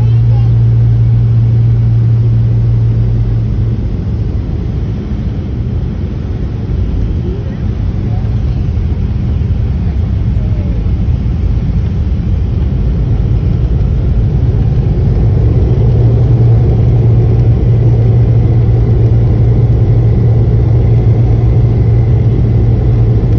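Aircraft wheels rumble over a runway.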